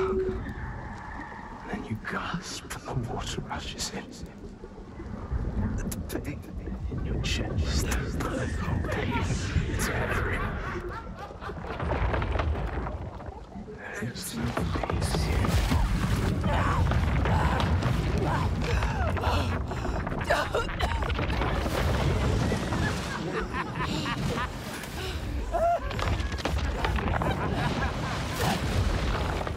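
Water churns and rushes with a deep, steady rumble.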